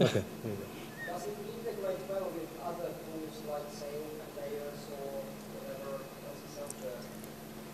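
A man talks calmly, farther off and quieter.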